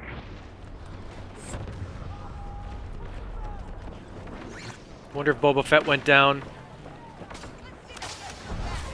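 Gunfire and explosions rumble from a game.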